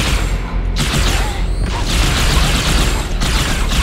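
Plasma explosions burst and fizz.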